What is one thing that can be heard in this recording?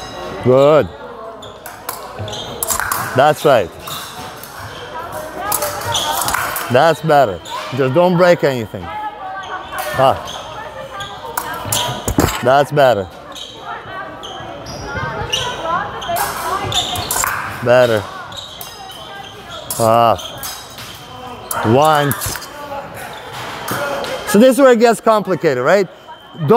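Fencing blades clink and clash in a large echoing hall.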